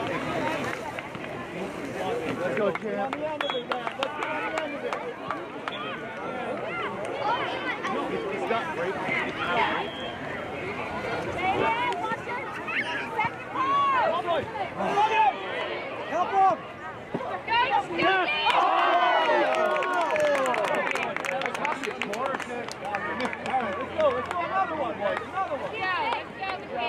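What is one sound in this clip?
Many adults and children shout and cheer from a distance outdoors.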